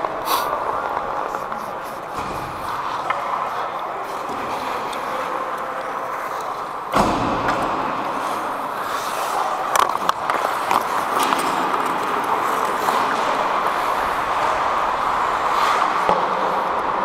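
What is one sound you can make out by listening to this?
Hockey sticks clack against pucks and ice in a large echoing rink.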